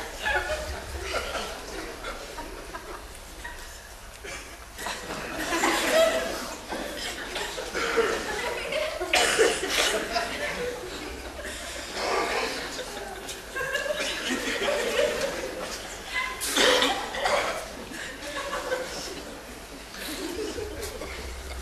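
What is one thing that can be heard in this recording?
Another man answers in a loud, comical voice.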